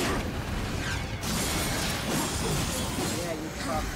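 Monsters roar.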